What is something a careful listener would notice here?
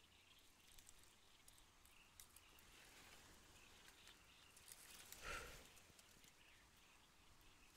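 Leafy branches rustle as a hand pulls them.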